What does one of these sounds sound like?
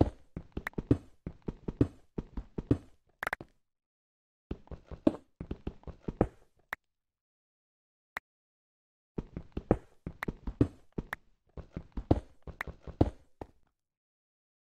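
Stone blocks crack and crumble in quick bursts of digging.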